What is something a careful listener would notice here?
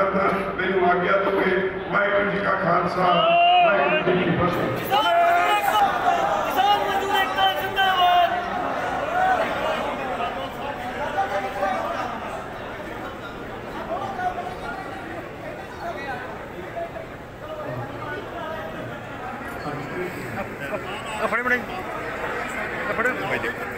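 A crowd talks and murmurs in the background.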